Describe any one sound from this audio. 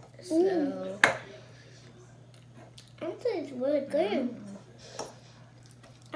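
A fork clinks on a plate.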